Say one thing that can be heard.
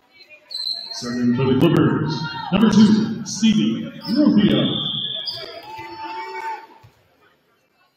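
Players shout short calls to each other in a large echoing gym.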